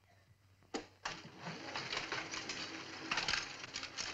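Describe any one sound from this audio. A printing press clatters and whirs.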